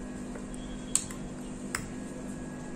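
A spoon clinks against a metal bowl.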